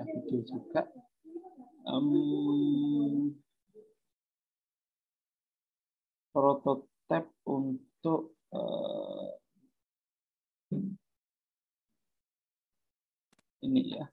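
A man speaks calmly with pauses, heard close through an online call.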